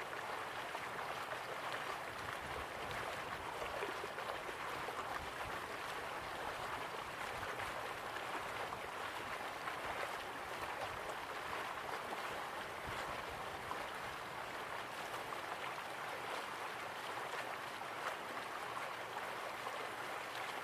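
A waterfall roars steadily.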